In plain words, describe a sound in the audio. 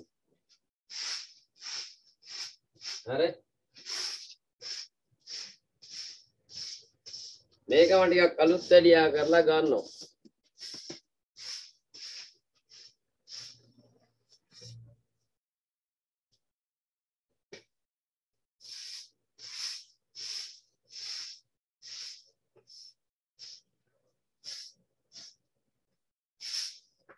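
Chalk taps and scratches on a blackboard in short strokes.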